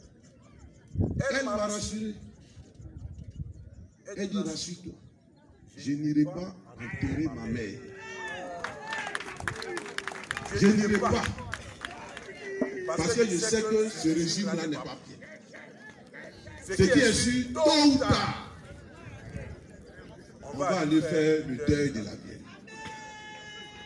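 A middle-aged man speaks with animation through a microphone and loudspeaker outdoors.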